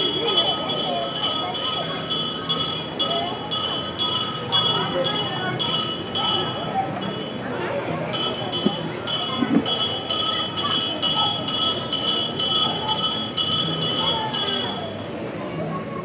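Small hand bells ring rapidly and repeatedly.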